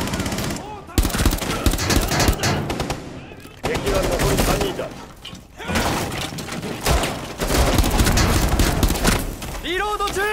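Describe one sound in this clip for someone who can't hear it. A rifle fires in quick bursts at close range.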